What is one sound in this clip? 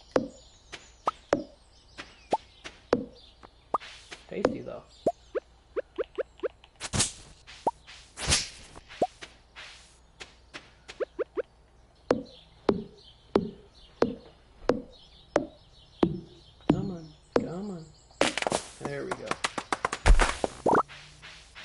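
An axe chops wood with sharp, repeated thuds.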